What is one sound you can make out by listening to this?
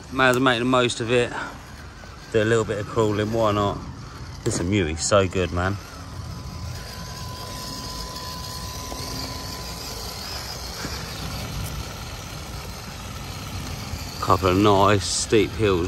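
Small tyres crunch over gravel and dirt.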